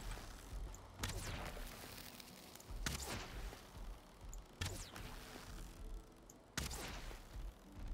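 Heavy blows thump against a beast.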